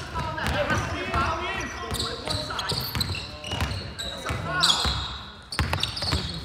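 A basketball bounces with dull thuds.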